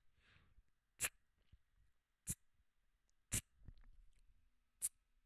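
Sharp percussive hits sound at an uneven beat.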